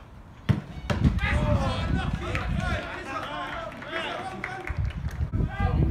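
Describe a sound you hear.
A small crowd cheers and calls out after a goal.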